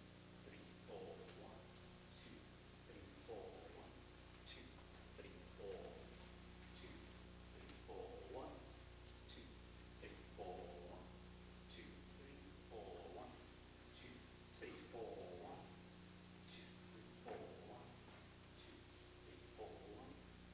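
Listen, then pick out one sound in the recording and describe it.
Dancers' feet tap and slide on a wooden floor.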